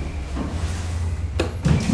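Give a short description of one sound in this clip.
A finger clicks an elevator button.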